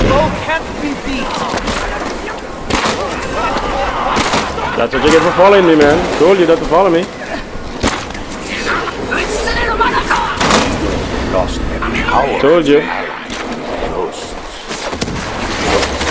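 Explosions burst with loud booms.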